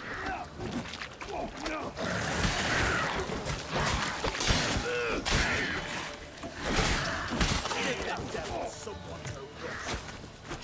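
Men grunt and shout while fighting.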